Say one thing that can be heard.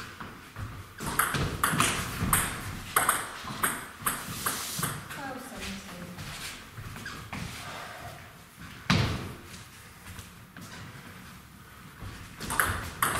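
A table tennis ball clicks back and forth between paddles and the table in an echoing hall.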